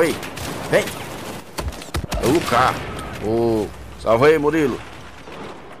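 An assault rifle fires rapid bursts of gunshots.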